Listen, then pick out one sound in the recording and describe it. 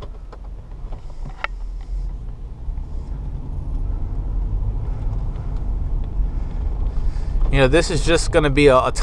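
A vehicle engine rumbles low and steadily, growing slightly louder.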